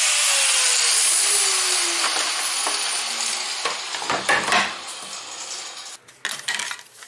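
A plastic pipe scrapes and rattles as it is pulled from a vise.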